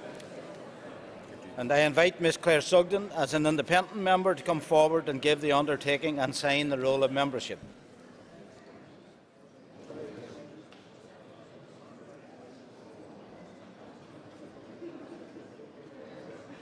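A crowd of people murmurs quietly in the background.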